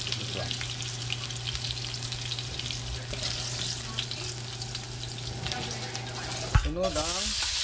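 Food sizzles in oil in a frying pan.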